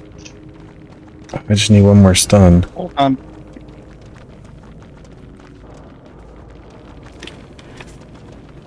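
Footsteps patter quickly through tall grass.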